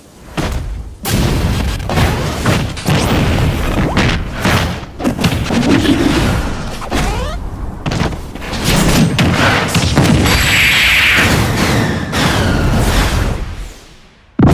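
Punches and sword slashes hit with sharp cracks.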